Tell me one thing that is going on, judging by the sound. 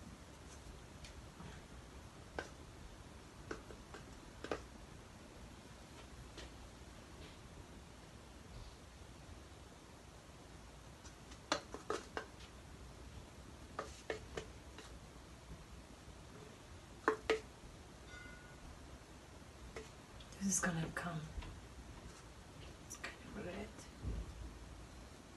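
A brush taps and clinks against a small bottle.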